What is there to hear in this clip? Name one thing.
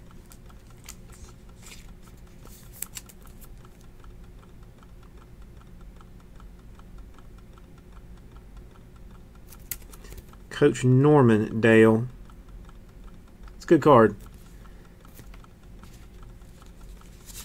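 Trading cards rustle and slide against each other as they are handled.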